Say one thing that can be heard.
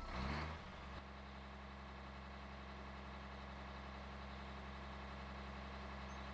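A tractor's diesel engine idles with a low steady rumble.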